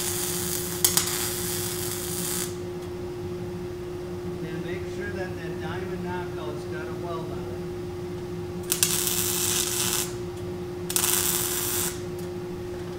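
A welding arc crackles and hisses in short bursts.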